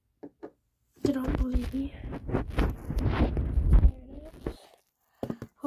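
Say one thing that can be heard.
Fingers rub and bump against the microphone.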